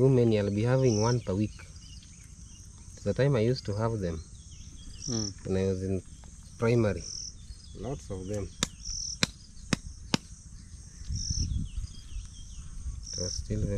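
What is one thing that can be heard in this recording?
A knife cuts through raw chicken.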